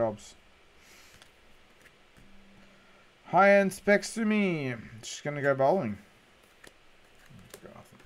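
Trading cards slide and flick against each other in hands.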